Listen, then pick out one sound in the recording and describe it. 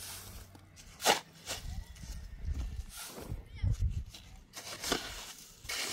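Wet cement slaps as a shovel drops it onto a heap.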